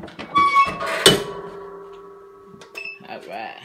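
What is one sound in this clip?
A heavy metal press lid swings down and shuts with a ringing metallic clang.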